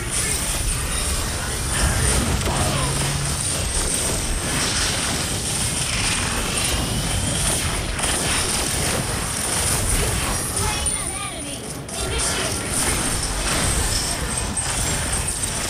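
Video game spell effects whoosh and burst in quick succession.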